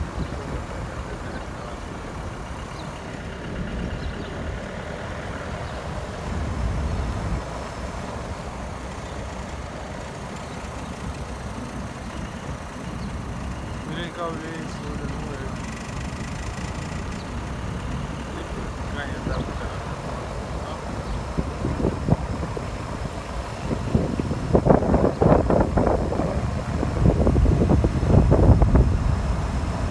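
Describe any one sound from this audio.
Wind blusters outdoors, rumbling in gusts.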